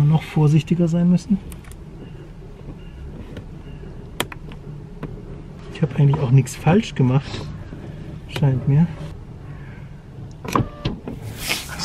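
A plastic pry tool clicks and scrapes against a car door panel.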